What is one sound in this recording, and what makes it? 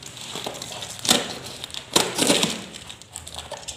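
Tape rips off a cardboard box.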